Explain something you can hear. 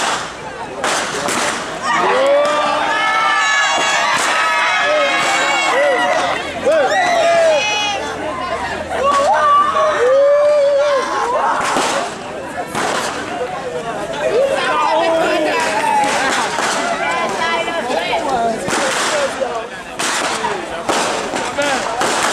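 Whips crack sharply on a road.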